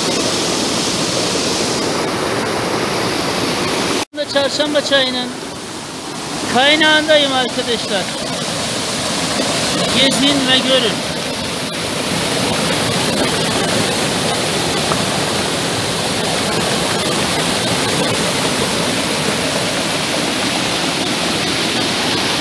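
A fast stream rushes and splashes loudly over rocks.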